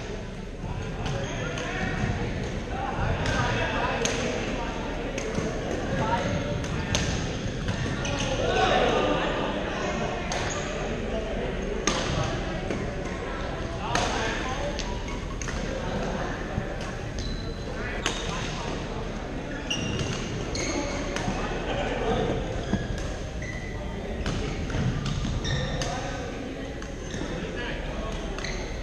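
Shoes squeak on a gym floor.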